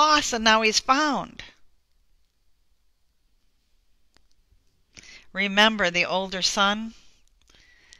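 A woman speaks calmly into a headset microphone.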